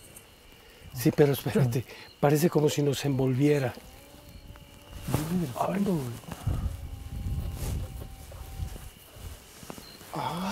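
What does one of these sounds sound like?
A man speaks excitedly.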